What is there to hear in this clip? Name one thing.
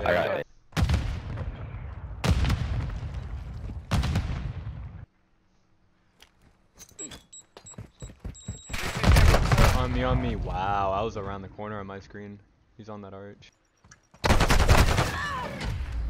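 Gunshots crack loudly in bursts.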